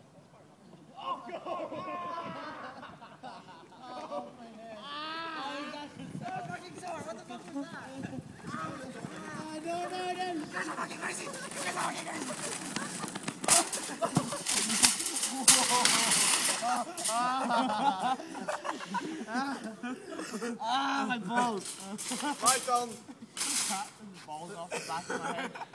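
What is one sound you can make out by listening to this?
Young men shout and laugh with excitement.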